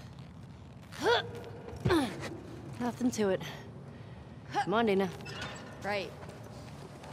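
A young woman speaks quietly to herself.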